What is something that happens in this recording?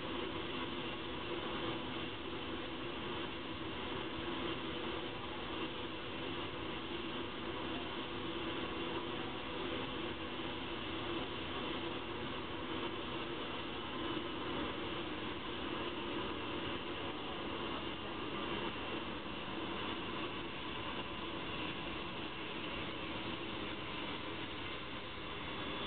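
Jet engines roar steadily as a large airliner flies low.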